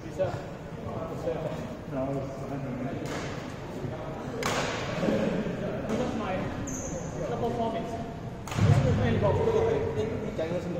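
Young men talk nearby in a large echoing hall.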